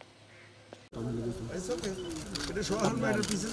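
A crowd of men murmurs nearby.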